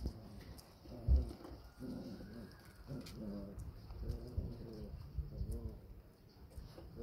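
Puppies whimper and whine.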